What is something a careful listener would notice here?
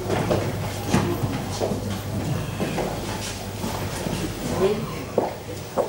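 Footsteps tap along a hard floor indoors.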